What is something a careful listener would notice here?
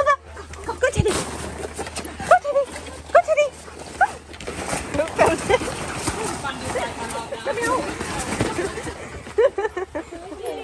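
Plastic balls rustle and clatter as dogs dig through a ball pit.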